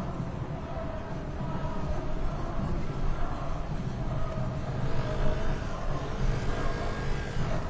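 A crowd murmurs in the distance.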